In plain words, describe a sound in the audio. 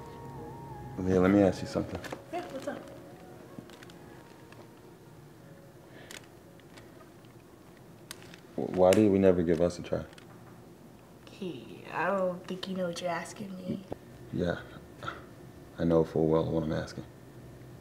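A young man speaks softly and emotionally close by.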